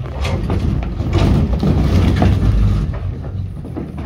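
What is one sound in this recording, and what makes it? Footsteps and chairs shuffle on a stage as several people move about.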